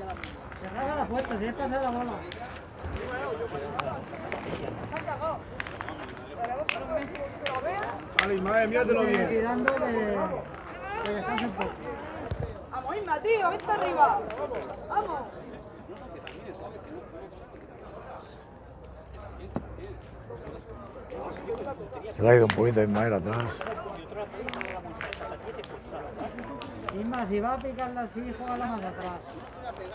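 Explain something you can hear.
Young boys talk and call out outdoors.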